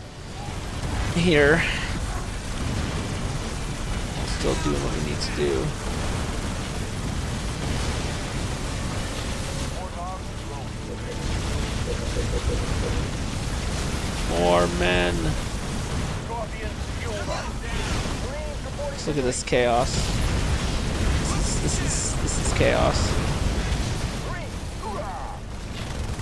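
Guns fire rapidly in a battle.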